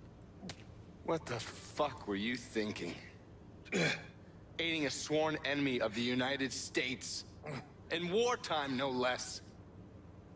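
A man speaks angrily, close by.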